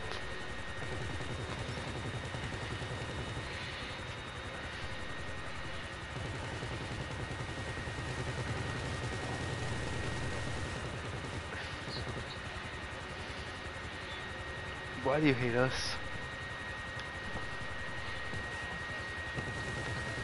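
A helicopter rotor beats steadily nearby.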